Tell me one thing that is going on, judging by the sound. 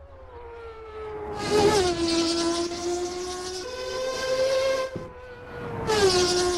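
A racing car's engine screams at high revs, shifting gears as it speeds past.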